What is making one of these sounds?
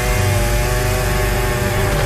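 A chainsaw roars.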